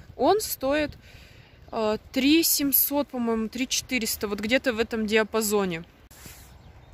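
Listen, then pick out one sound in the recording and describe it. A young woman talks calmly close to the microphone.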